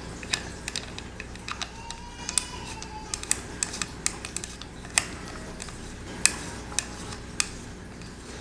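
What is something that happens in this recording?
Small metal parts click and tap against wood.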